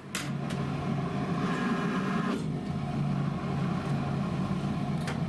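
An iron glides and scrapes across fabric.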